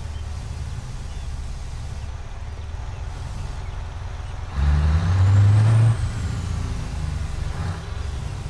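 A heavy truck engine rumbles steadily and roars louder for a moment.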